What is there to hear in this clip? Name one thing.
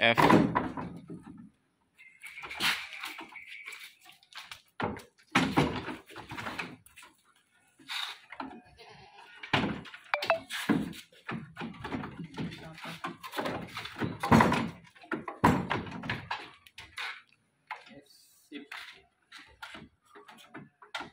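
Goat hooves knock and scrape on a wooden truck bed.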